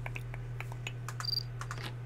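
A button clicks softly.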